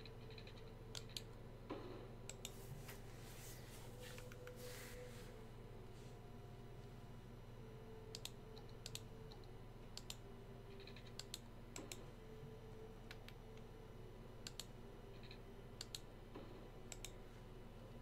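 Short clicks and placement chimes sound as roads are laid down.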